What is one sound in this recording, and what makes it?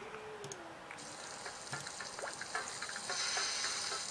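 Sausages sizzle on a grill in a game.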